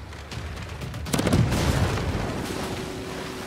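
A cannon booms in a sea battle.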